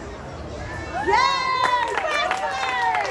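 Spectators cheer and shout loudly.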